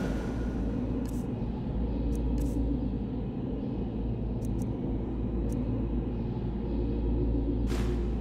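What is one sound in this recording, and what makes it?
Soft clicks tick one after another.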